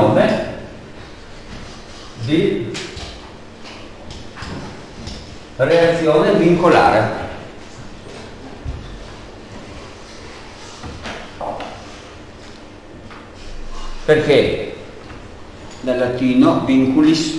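A man talks in short bursts with long pauses.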